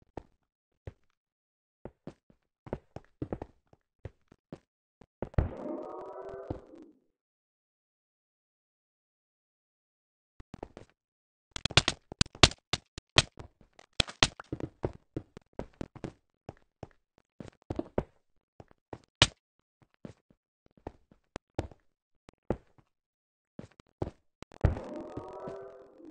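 Blocks are placed one after another with quick, sharp clicks and taps.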